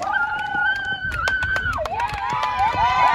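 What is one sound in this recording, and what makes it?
Hands clap and slap in high fives.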